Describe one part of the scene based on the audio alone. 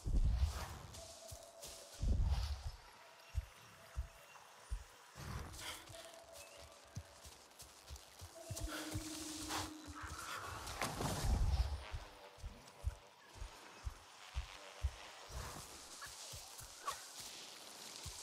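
Footsteps crunch through dense undergrowth at a steady walking pace.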